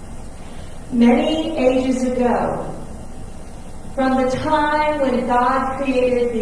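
A woman sings slowly into a microphone in a large echoing room.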